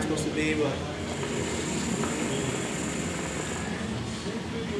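Water bubbles in a hookah as a young man draws on the hose.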